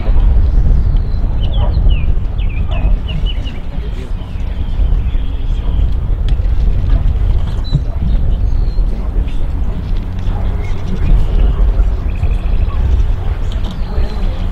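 Wind buffets and rumbles steadily outdoors.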